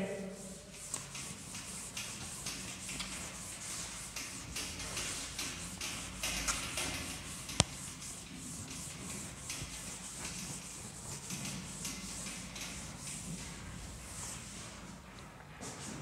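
A duster rubs across a chalkboard in a steady swish.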